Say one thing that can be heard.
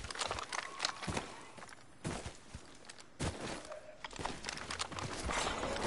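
Footsteps thud quickly over the ground in a video game.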